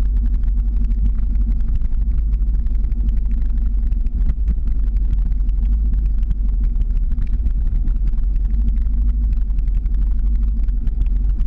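Skateboard wheels rumble steadily on rough asphalt.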